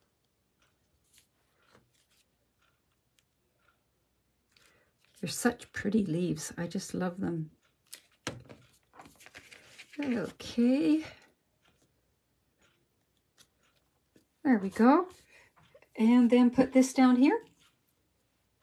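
Paper rustles softly as hands handle a card.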